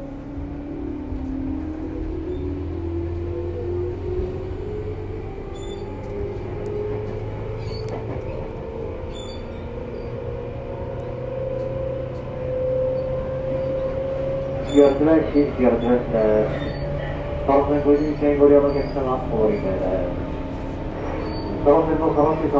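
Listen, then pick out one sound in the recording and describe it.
An electric train hums and whines steadily as it approaches slowly on the tracks.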